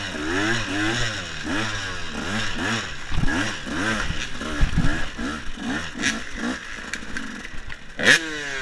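An enduro dirt bike revs up and down.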